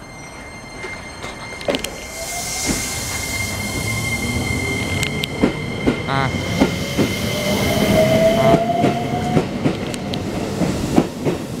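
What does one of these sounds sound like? An electric train hums and whines as it pulls away, rising in pitch.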